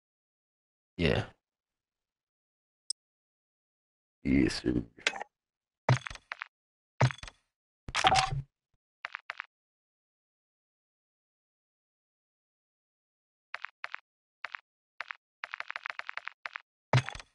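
Short electronic menu clicks and whooshes sound in quick bursts.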